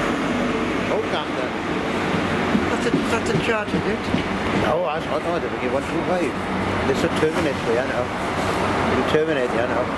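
Train wheels clatter and squeal rhythmically over the rails.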